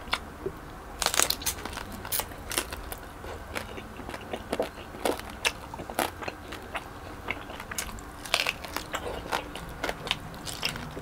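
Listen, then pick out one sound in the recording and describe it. Crispy skin crackles as a man bites into it close to a microphone.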